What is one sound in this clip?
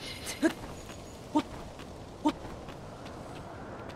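Hands and feet scrape on stone while climbing a pillar.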